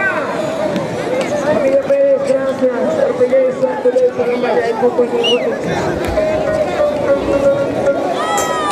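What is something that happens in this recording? A large outdoor crowd shouts and cheers.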